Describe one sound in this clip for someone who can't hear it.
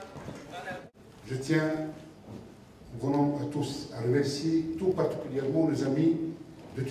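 A man speaks calmly into a microphone, heard over loudspeakers in a large echoing hall.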